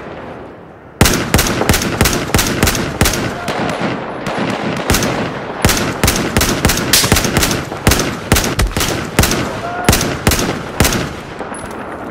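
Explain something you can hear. A rifle fires repeated loud shots in quick bursts.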